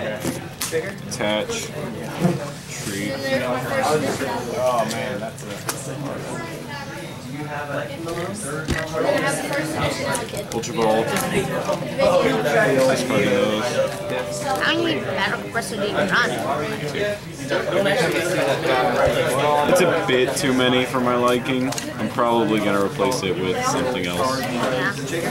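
Playing cards slide and shuffle across a mat.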